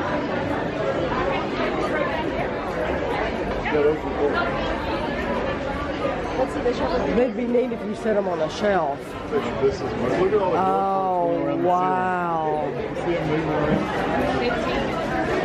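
A crowd chatters in a busy indoor space.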